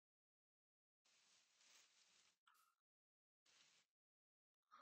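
Grass blocks crunch softly as they are dug out.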